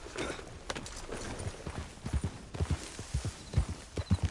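A horse's hooves thud on the ground at a trot.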